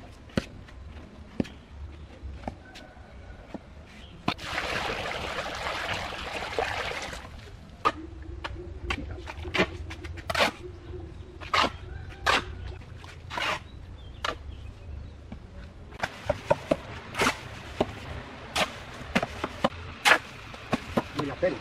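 A shovel scrapes and chops through wet sand and cement.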